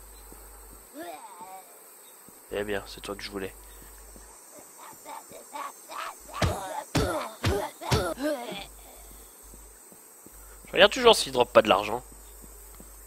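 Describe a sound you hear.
A man talks with animation through a microphone, close by.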